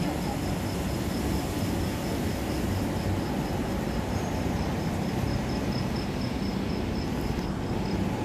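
A glass door opens and swings shut.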